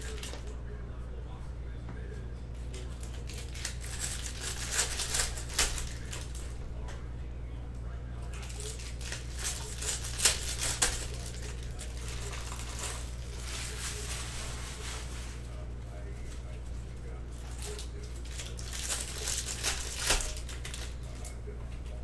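Foil wrappers crinkle and rustle as packs are torn open.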